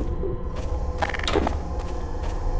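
A weapon clicks as it is drawn.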